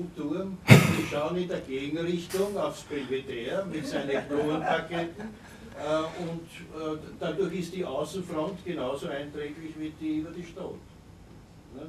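A man speaks with animation through a microphone in a room with a slight echo.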